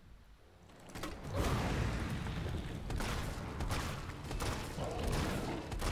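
A flamethrower roars with a burst of fire.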